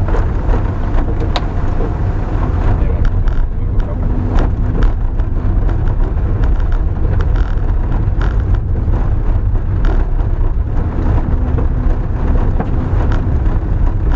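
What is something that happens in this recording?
A car engine rumbles steadily at low speed.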